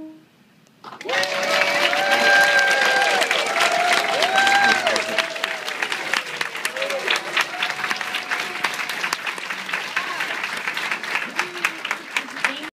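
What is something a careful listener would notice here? A room full of people applauds loudly.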